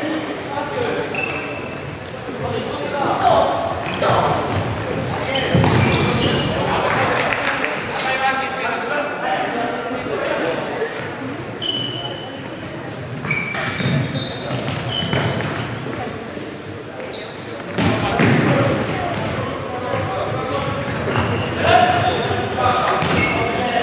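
Players shout to each other in a large echoing hall.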